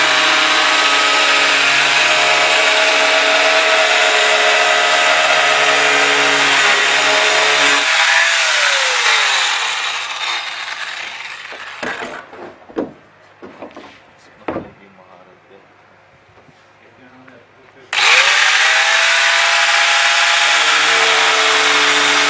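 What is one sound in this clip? An angle grinder whines loudly as it cuts through a metal drum.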